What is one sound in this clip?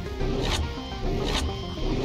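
Electricity crackles and zaps loudly.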